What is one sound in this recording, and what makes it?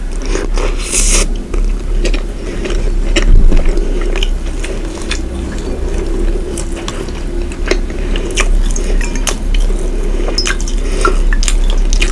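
A woman chews and smacks her lips wetly close to a microphone.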